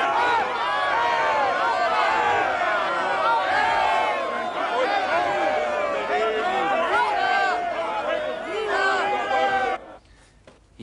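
A large crowd shouts and cheers loudly.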